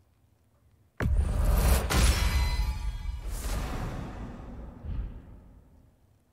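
A loud rumbling, shimmering burst plays as an item is upgraded.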